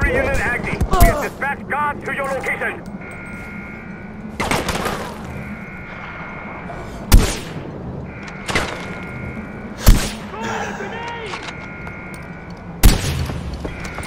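A sniper rifle fires loud single shots that echo off across the hills.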